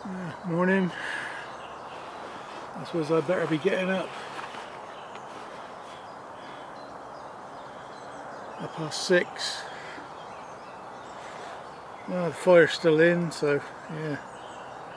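A man talks calmly and quietly from close by, in short bursts.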